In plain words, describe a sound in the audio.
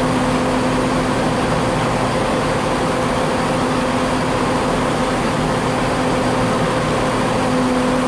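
Train wheels clatter over points.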